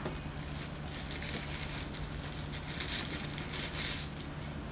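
Paper crinkles and rustles.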